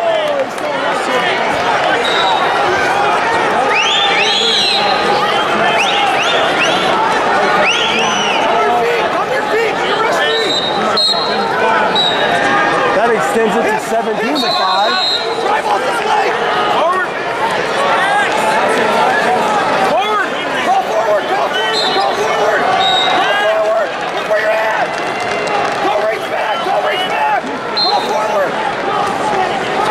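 A large crowd chatters and cheers in a big echoing indoor arena.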